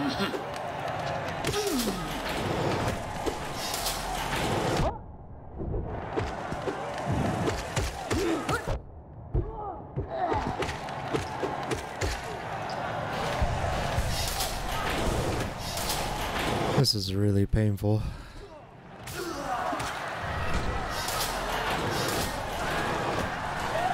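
Sword slashes and hits ring out in quick bursts.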